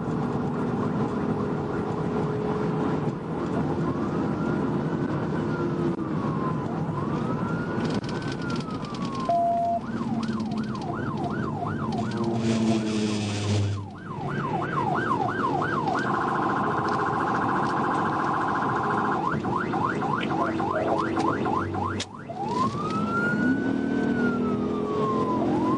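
A car engine hums with road noise as it drives at speed.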